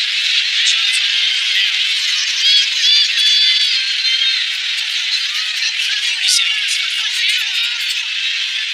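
A large crowd cheers and shouts in a big arena.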